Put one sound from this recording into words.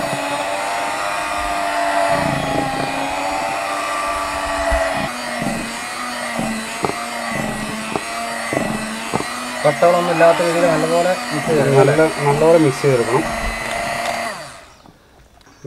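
An electric hand mixer whirs steadily while beating batter.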